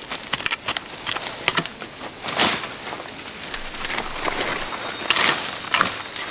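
Footsteps crunch through undergrowth.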